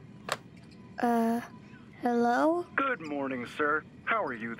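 A young boy speaks calmly into a phone.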